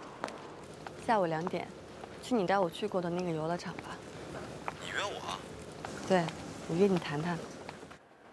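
A young woman talks on a phone, softly and close by.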